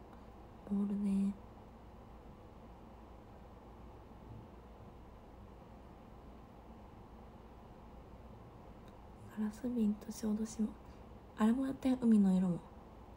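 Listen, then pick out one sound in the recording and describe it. A young woman speaks softly in short bursts, close by.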